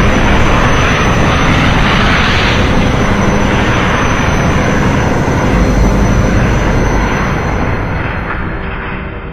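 A loud roaring rumble of destruction plays from a television, then fades.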